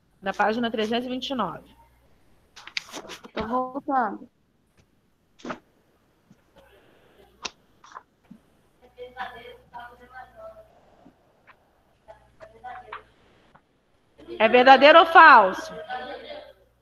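A woman speaks with animation over a headset microphone.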